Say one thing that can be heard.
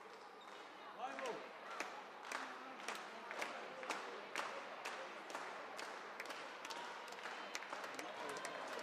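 A crowd claps in a steady rhythm in a large echoing hall.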